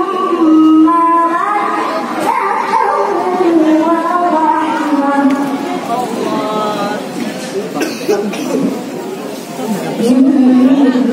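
A woman sings a slow melody into a microphone, heard through loudspeakers.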